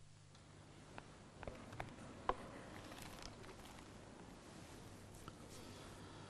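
Footsteps and small knocks echo in a large, reverberant hall.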